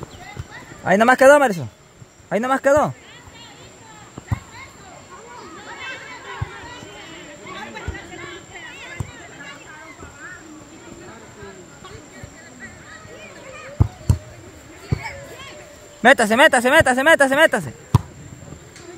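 Young women shout loudly to each other outdoors.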